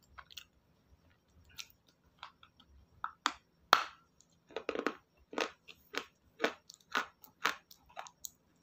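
Paper crinkles and rustles close by.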